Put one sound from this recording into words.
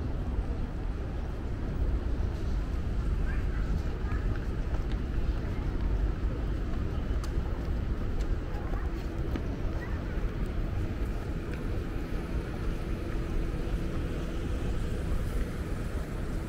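Outdoor city noise rumbles steadily with a low hum.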